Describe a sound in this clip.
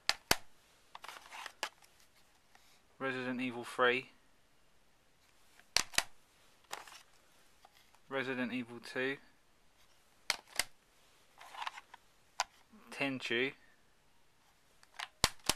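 A plastic case clicks and taps as it is handled.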